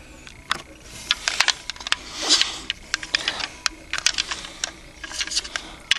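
A small plastic toy bus rattles and clicks as hands handle it.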